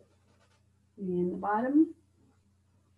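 A woman speaks briefly and calmly up close.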